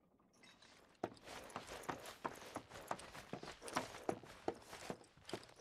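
Footsteps thud steadily on wooden stairs and floorboards.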